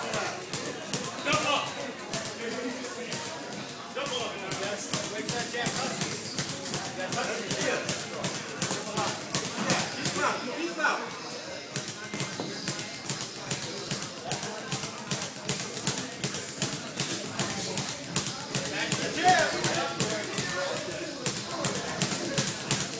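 Boxing gloves smack against pads and gloves in quick, repeated thuds.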